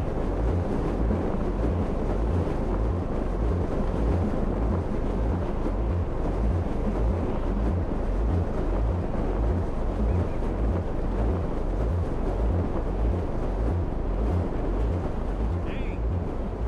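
Wind rushes steadily past a parachute.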